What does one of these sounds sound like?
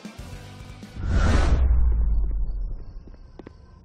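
A loud whoosh rushes in and fades.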